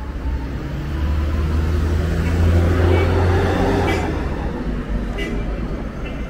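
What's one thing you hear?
A pickup truck drives past close by.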